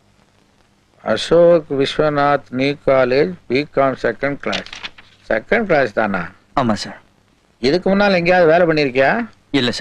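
An elderly man speaks slowly and seriously, close by.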